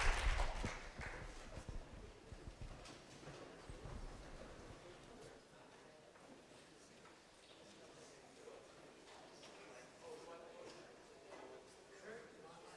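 A crowd murmurs and chatters as people get up to leave.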